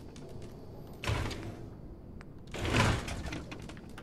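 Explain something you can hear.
A metal drawer slides open with a scraping rattle.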